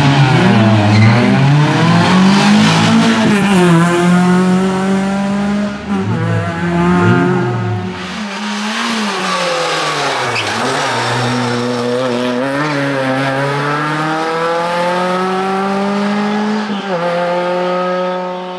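A race car speeds away, its engine climbing in pitch through gear changes.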